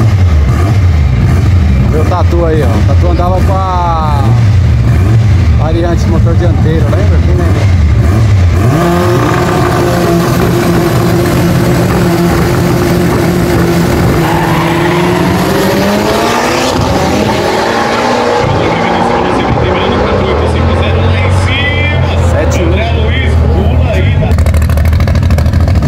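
Car engines idle with a loud, rough rumble.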